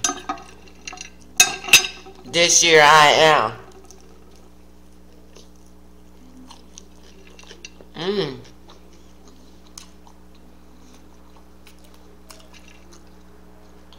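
An older woman chews food with soft wet smacking sounds.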